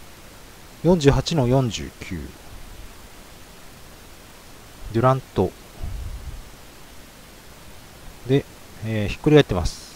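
Trading cards rustle and slide against each other.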